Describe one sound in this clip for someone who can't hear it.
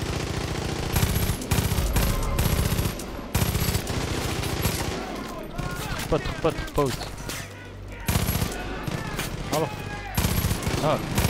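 Gunshots fire in rapid bursts, loud and sharp.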